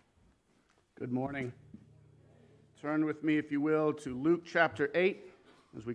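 A man speaks calmly into a microphone in an echoing hall.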